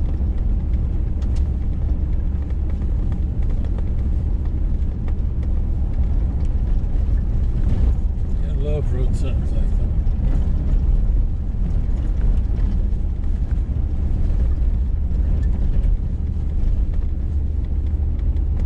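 Tyres crunch and rumble over a gravel road.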